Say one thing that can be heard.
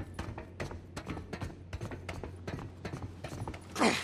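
Footsteps clank on the rungs of a metal ladder.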